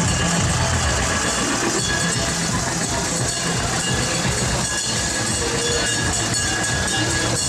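A crowd chatters and cheers outdoors.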